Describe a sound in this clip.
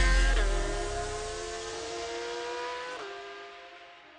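A race car engine roars as it drives past and fades.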